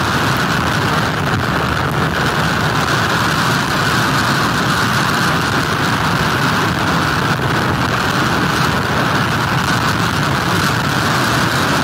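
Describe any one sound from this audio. Strong wind roars steadily outdoors.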